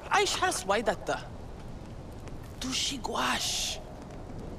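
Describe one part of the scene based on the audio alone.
A young woman speaks calmly in a low voice, close by.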